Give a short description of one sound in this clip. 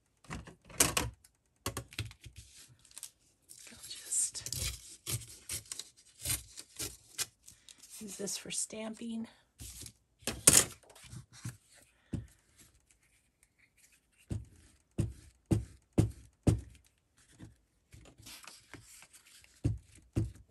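Sheets of paper rustle and slide across a mat.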